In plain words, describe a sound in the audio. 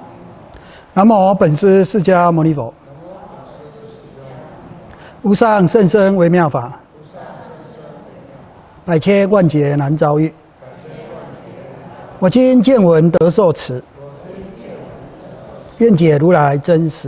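An elderly man chants slowly in short sung phrases with pauses between them, close to a microphone.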